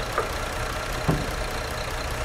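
A luggage hatch on a bus clunks open.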